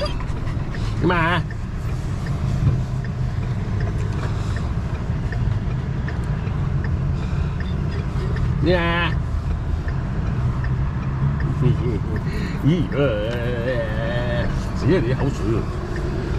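A dog whines in short, rising and falling cries.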